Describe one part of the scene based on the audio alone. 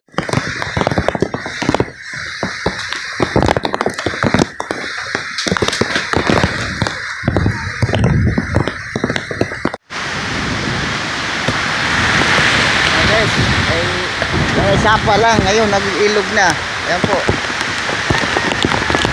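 Strong typhoon wind roars and gusts through trees.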